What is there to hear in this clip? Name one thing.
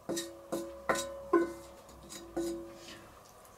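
A metal ladle clinks against a cast-iron pot and rings.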